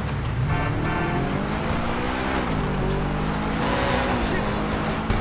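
A sports car engine roars as the car accelerates.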